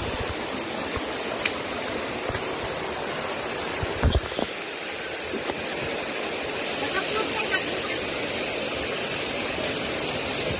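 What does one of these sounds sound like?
Footsteps scrape and knock on wet stones.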